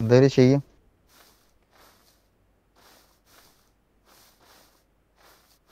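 Footsteps swish steadily through grass.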